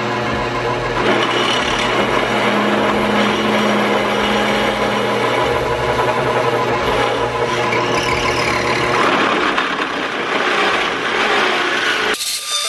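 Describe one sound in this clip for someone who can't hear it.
A hole saw grinds and screeches through metal.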